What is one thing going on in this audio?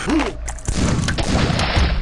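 A gun fires with a sharp blast.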